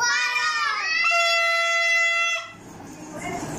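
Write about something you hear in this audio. A plastic toy horn blows a steady, shrill note.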